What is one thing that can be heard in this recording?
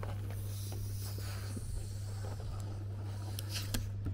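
A woman blows into a balloon with puffs of breath.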